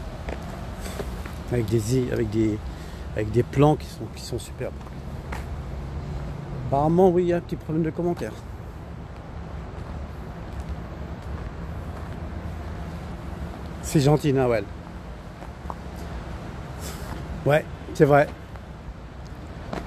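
Footsteps tap slowly on a paved path.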